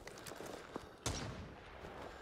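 A gunshot cracks out loudly.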